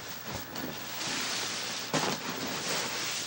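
A nylon bag rustles as it is handled close by.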